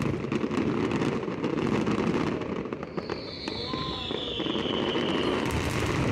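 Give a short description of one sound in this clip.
Fireworks boom with a deep rumble.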